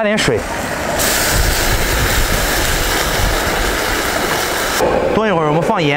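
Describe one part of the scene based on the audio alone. Water pours into a hot wok and sizzles.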